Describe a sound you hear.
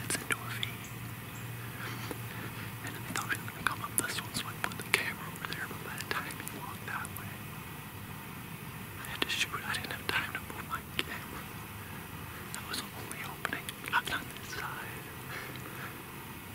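A man speaks quietly and closely into a microphone, in a low hushed voice.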